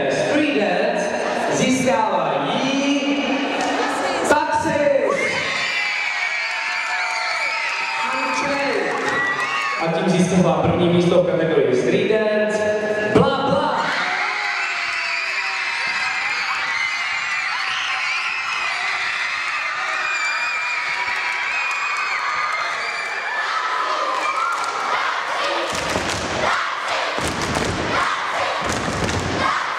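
A crowd of young girls and boys chatters and shouts in a large echoing hall.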